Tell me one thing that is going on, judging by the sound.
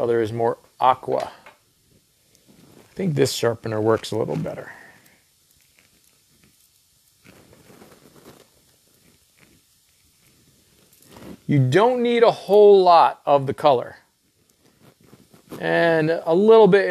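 A man talks calmly into a clip-on microphone, close by.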